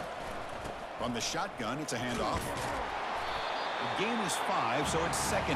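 Football players collide with thuds.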